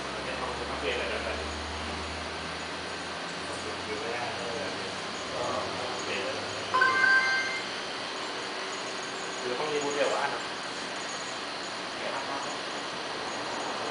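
Computer fans hum steadily.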